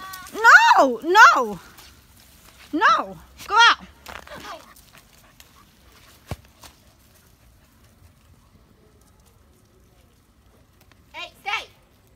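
A small dog yips excitedly in short, high cries.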